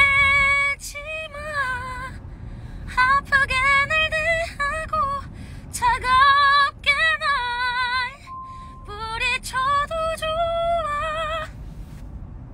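A young woman sings emotionally, close by.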